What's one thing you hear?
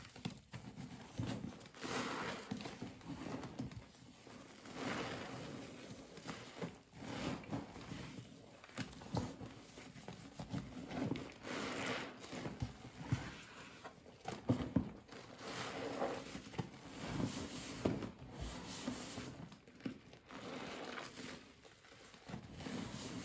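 Gloved hands squish and squelch through thick foam close by.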